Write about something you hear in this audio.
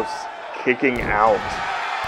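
A wrestler lands hard on the mat with a heavy thud.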